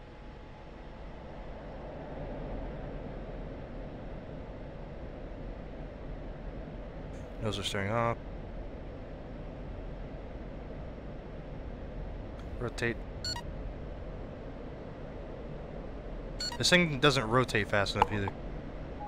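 A jet engine roars steadily as a plane rolls down a runway.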